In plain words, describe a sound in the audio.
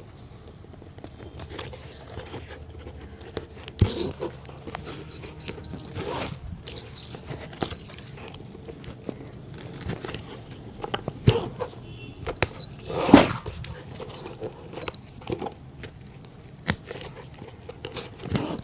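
Thread is pulled through shoe leather with short rasping swishes.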